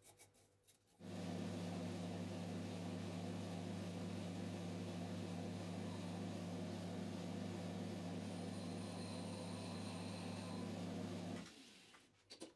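Metal shavings scrape as a cutting tool turns metal.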